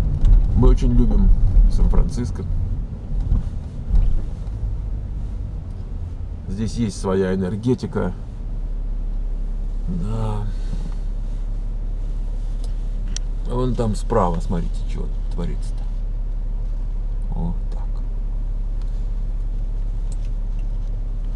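A car engine hums low and steady.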